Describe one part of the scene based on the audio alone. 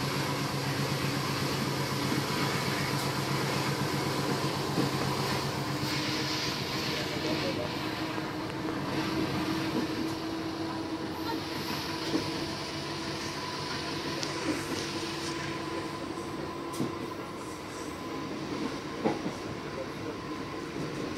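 A GE U18C diesel-electric locomotive idles.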